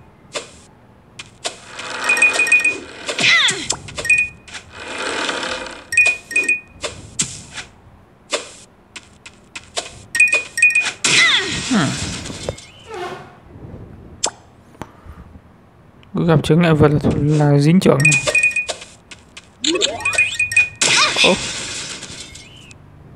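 Game sound effects chime from a tablet speaker.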